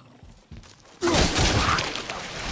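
A crystal shatters with a loud, sudden burst.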